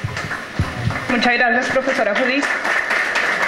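A woman speaks into a microphone over loudspeakers in a hall.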